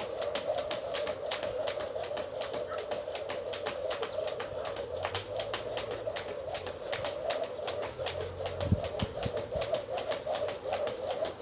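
A skipping rope slaps the ground in a quick, steady rhythm.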